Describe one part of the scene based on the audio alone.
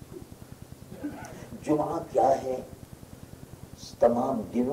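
A man speaks with feeling into a microphone over a loudspeaker.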